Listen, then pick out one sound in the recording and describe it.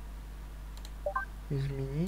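A short electronic blip sounds as a game menu changes.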